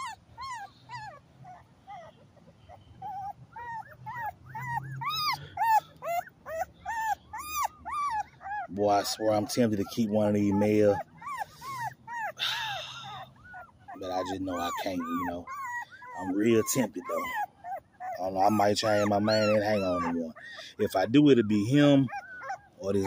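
A puppy whimpers and squeals in high, repeated cries.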